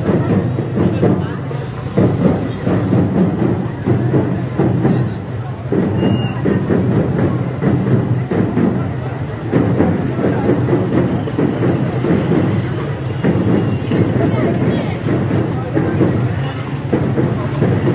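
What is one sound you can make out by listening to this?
A large crowd's voices fill the air outdoors.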